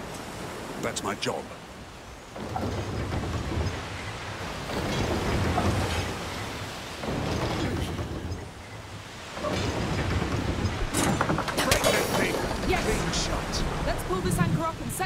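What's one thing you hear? Stormy sea waves roar and crash.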